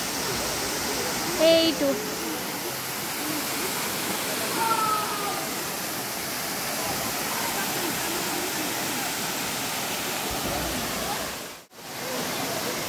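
A waterfall roars steadily, splashing into a pool.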